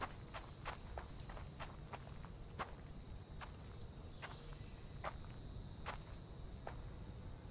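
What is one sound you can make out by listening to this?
Footsteps crunch steadily over leafy forest ground.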